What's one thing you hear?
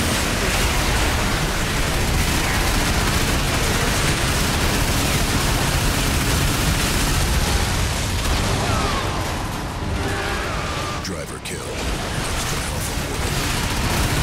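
Missiles and explosions boom loudly.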